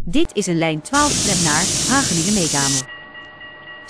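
Tram doors hiss open.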